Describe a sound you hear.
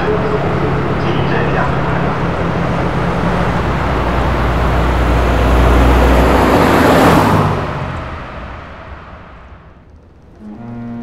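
A bus engine rumbles loudly in an echoing tunnel, then fades away.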